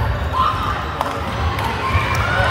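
A volleyball thuds when struck.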